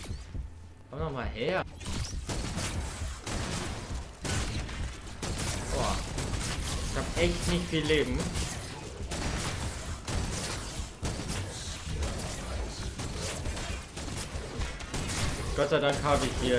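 Gunfire and explosions crackle and boom rapidly in a game battle.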